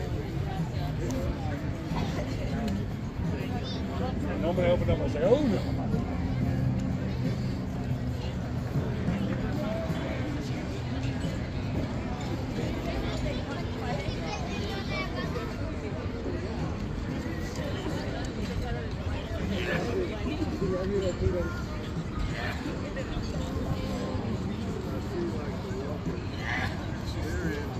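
People chat in the distance, outdoors.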